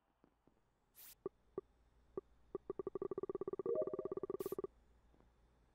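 Electronic game effects blip and zap rapidly.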